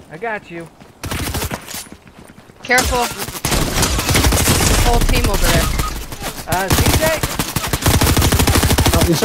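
Rapid gunshots crack from a video game.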